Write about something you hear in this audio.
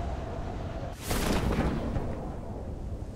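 A parachute snaps open with a loud whoosh.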